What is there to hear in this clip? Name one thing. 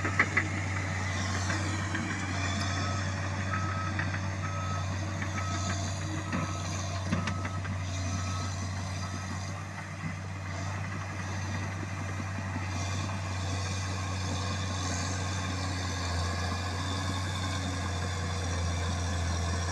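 A bulldozer's diesel engine rumbles steadily nearby.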